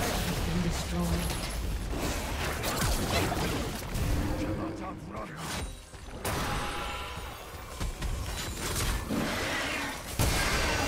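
Magic blasts and weapon strikes crackle and clash in a busy fight.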